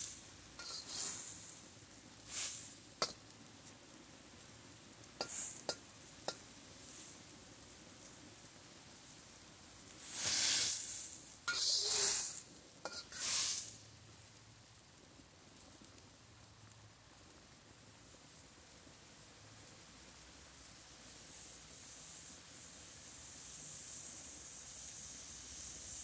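Water boils and bubbles in a wok.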